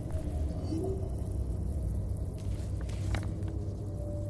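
A sheet of paper rustles as it is unfolded.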